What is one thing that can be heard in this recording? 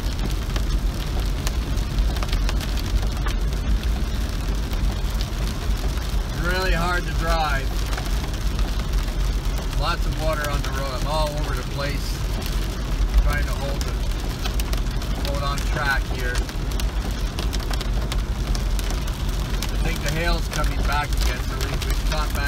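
Rain patters steadily on a car's roof and windscreen.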